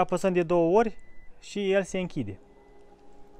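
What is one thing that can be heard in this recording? A car's tailgate beeps briefly.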